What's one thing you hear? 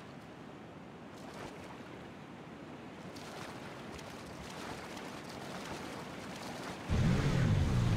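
Water splashes as a swimmer moves through it.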